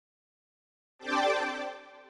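A short chime rings out over a menu.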